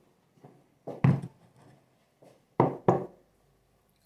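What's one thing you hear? A ceramic teapot is set down on a table with a knock.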